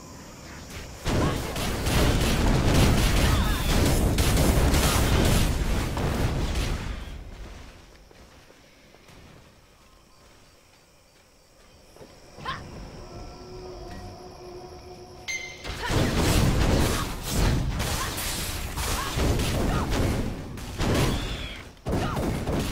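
Game combat effects crash and whoosh loudly.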